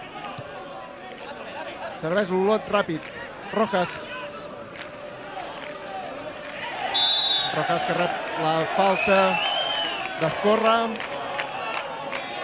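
A crowd of spectators murmurs in the open air.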